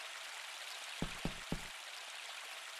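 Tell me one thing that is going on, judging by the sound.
A horse's hooves clop on wooden boards.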